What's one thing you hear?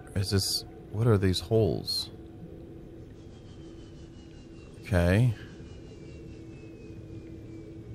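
A small submarine's engine hums steadily.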